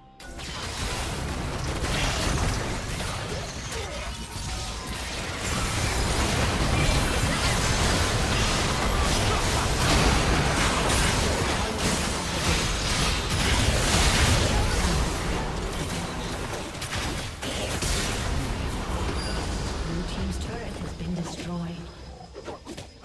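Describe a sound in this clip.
Game spell effects blast and crackle in a dense, noisy fight.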